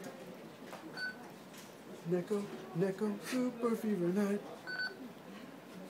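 A toy voice recorder beeps.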